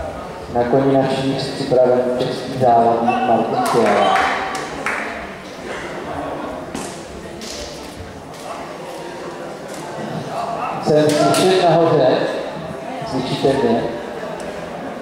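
A man talks in a large echoing hall.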